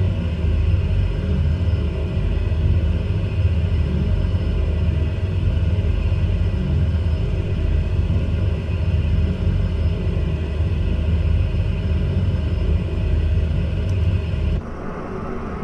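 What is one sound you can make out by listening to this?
A propeller engine hums steadily inside a cockpit.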